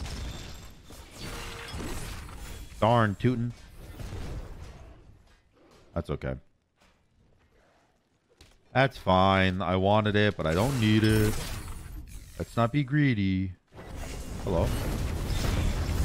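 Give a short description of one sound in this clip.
Game spells whoosh and crackle.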